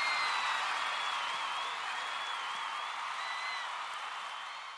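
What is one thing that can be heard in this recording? People whistle shrilly from the crowd.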